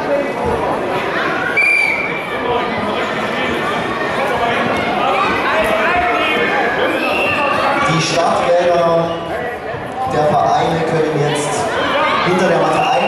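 Children and adults call out and chatter in a large echoing hall.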